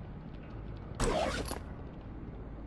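A game menu closes with a short swish.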